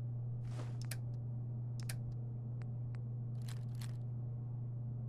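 Menu selections click in quick succession.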